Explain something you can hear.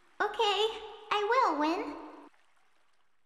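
A young girl giggles and speaks cheerfully.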